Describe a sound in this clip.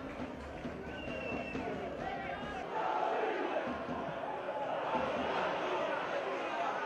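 A large crowd murmurs and cheers outdoors in a stadium.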